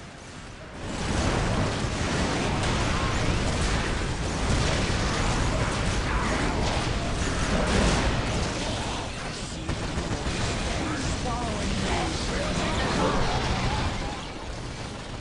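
Gunfire rattles in a loud battle.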